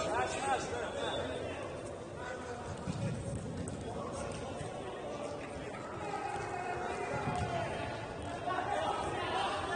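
Men shout to each other across a large echoing hall.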